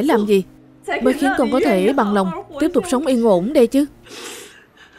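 A woman speaks close by in a tearful, sobbing voice.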